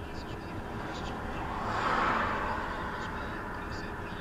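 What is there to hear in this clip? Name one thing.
A car passes by with a rushing swell.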